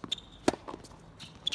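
A tennis ball is struck with a racket with a sharp pop.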